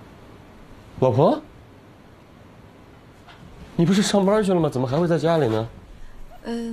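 A man speaks with a raised, questioning voice.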